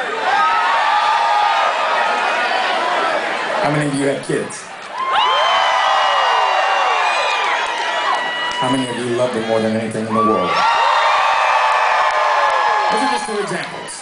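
A crowd cheers and screams loudly.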